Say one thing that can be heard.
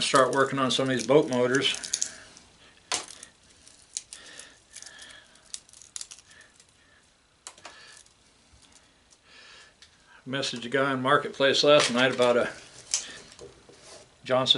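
Metal pieces clink and rustle in a man's hands.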